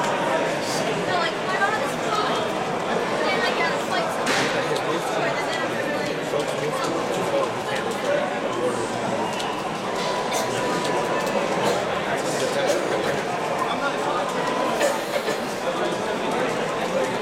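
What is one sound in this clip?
Game music plays steadily throughout.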